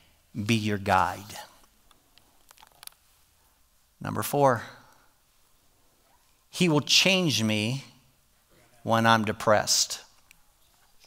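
An older man speaks into a microphone in short, emphatic phrases with pauses between them.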